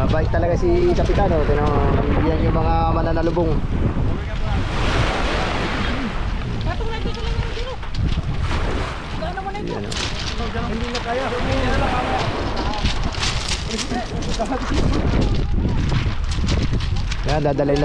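Small waves wash onto a pebble shore.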